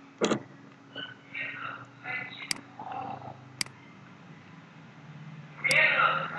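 A man speaks quietly over an online call.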